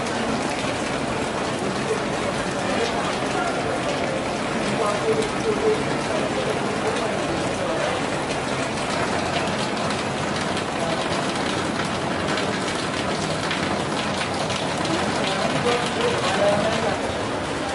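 Rain pours steadily outdoors.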